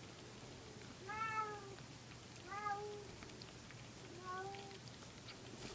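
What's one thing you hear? A newborn kitten mews softly, a few times.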